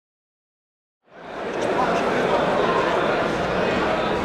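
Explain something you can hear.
A large crowd chatters and cheers in an echoing hall.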